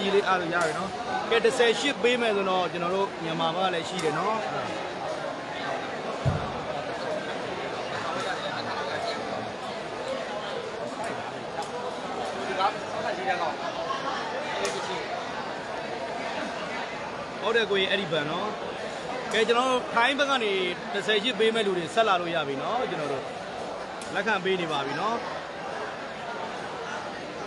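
A crowd of young men chatters and calls out in a large echoing hall.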